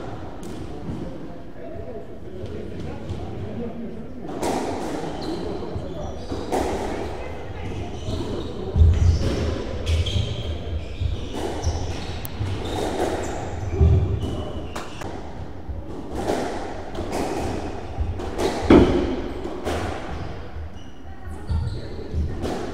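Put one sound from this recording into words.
A squash ball smacks against the walls, echoing in the court.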